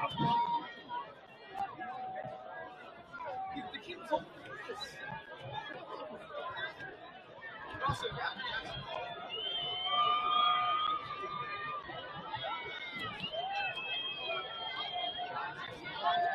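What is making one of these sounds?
A crowd of players and spectators chatters and shouts outdoors.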